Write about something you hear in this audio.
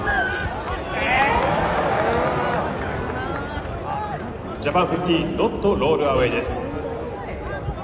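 A large stadium crowd cheers and chatters loudly.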